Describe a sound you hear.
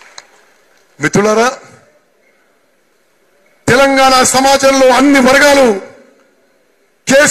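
A man gives a loud, impassioned speech through a microphone and loudspeakers, in bursts with pauses.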